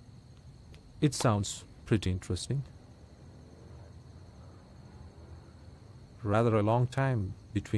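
A second man answers in a low voice close by.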